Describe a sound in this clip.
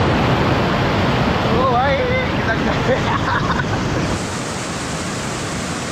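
Rushing water churns and splashes loudly close by.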